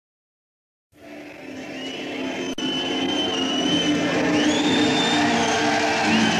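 A rock band plays loudly with electric guitars and drums in a large hall.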